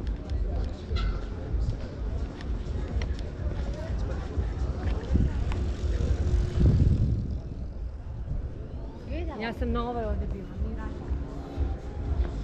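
Bicycle tyres roll over pavement.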